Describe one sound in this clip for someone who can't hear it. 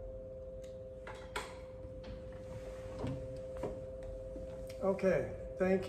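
An organ holds a steady soft note.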